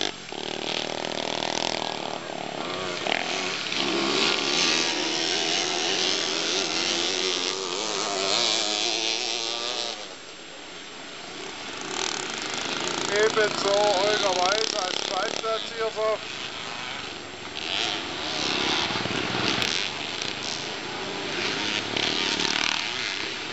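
Motorcycle engines roar and rev as dirt bikes race around a track.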